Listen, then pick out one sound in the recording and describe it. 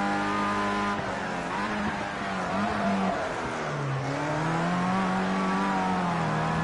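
A racing car engine drops in pitch as the car brakes for a corner, then climbs again.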